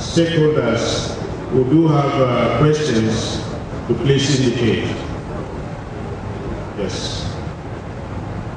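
A man speaks forcefully into a microphone through loudspeakers.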